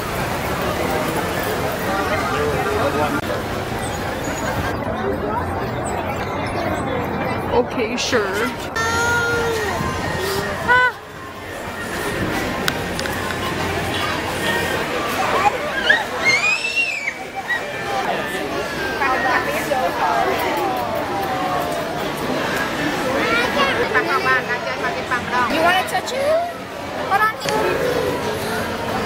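A crowd chatters and murmurs outdoors.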